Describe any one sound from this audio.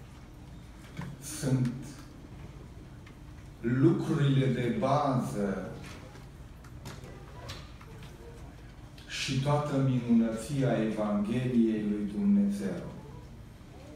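A middle-aged man speaks calmly through a microphone in a hall, with pauses between phrases.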